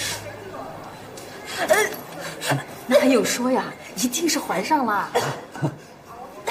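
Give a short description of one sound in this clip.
A woman groans in discomfort nearby.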